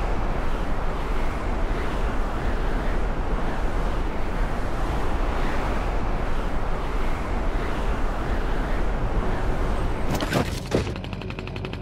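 Wind rushes loudly past a character falling through the air.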